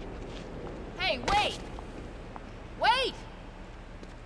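A young woman calls out loudly.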